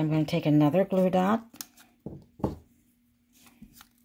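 Sticky tape peels off a roll.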